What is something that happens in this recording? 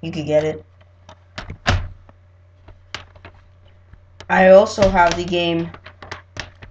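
A teenage boy speaks casually and close by, in short bursts.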